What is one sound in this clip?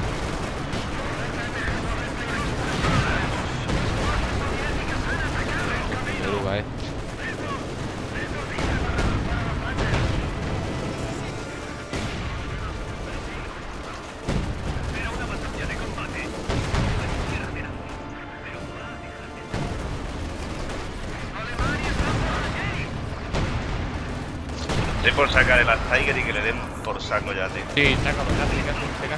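Gunfire and explosions rumble across a battle.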